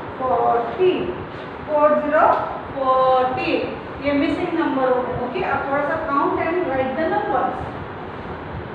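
A woman speaks clearly and with animation, close by.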